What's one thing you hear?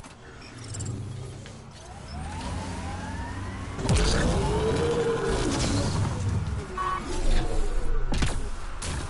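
A vehicle engine rumbles and whines as it drives over rough ground.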